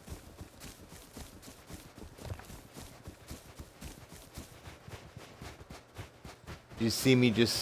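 Quick footsteps thud on dry ground.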